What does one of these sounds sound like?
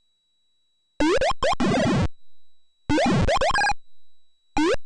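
A retro game character fires rapid blaster shots.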